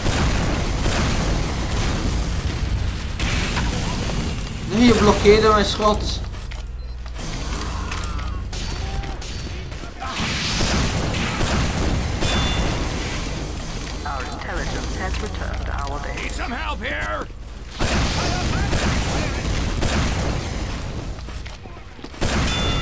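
Rockets fire and explode with heavy booms.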